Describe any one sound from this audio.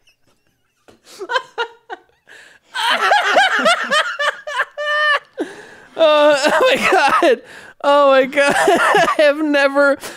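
A second man laughs and talks into a close microphone.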